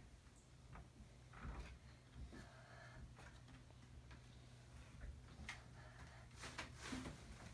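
A wooden bed frame creaks as a small child climbs it.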